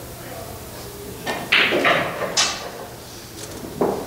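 A cue stick strikes a billiard ball with a sharp click.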